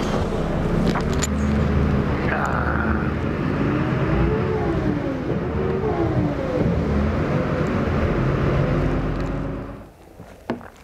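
A bus engine rumbles and revs as the bus pulls away.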